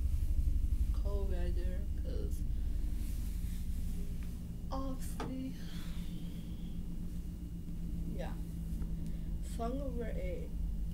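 A young woman speaks close by in short bursts.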